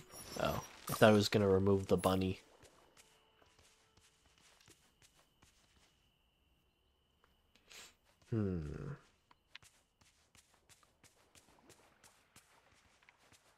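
Light footsteps patter quickly on grass.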